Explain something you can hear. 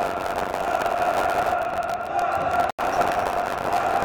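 A man shouts loudly from the stands.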